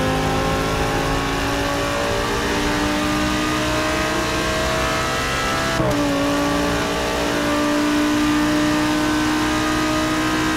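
A racing car engine roars at high revs, climbing steadily in pitch.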